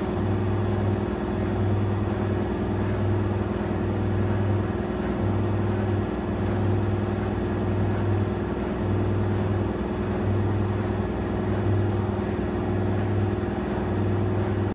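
A washing machine drum turns and hums steadily.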